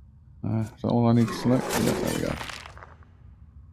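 A sword strikes with a burst of magic.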